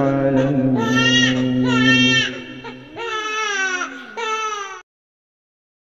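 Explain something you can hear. A baby cries loudly and wails up close.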